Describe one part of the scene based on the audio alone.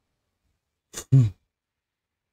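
A man laughs briefly close to a microphone.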